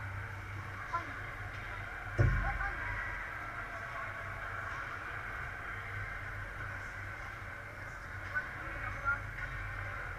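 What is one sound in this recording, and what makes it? Hockey sticks knock pucks with sharp clacks in a large echoing rink.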